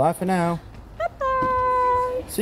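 A woman calls out loudly.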